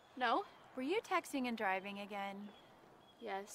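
A middle-aged woman speaks.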